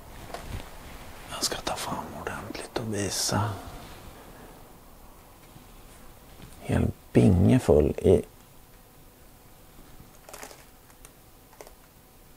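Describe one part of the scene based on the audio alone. Small pebbles rattle in a man's hands.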